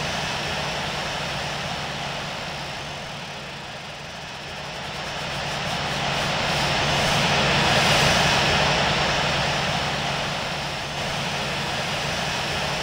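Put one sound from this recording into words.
Jet engines roar steadily, swelling louder and then easing off.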